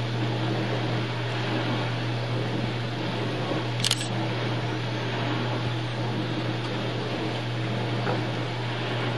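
A baby sucks and smacks on a plastic spoon.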